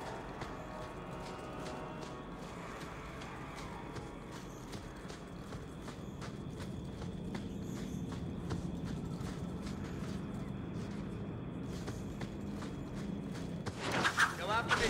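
Footsteps crunch on gravel as a warrior runs.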